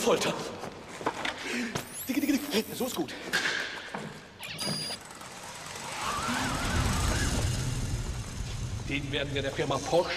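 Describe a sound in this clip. An elderly man speaks excitedly.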